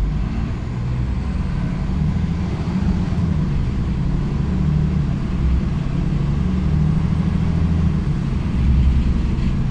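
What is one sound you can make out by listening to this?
A bus engine rumbles steadily and low as the bus drives along.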